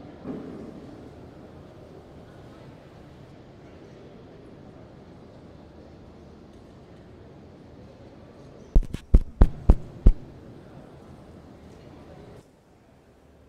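A congregation murmurs softly in a large echoing hall.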